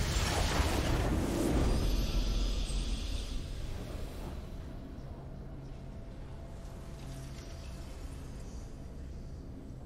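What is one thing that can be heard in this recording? A triumphant game fanfare plays.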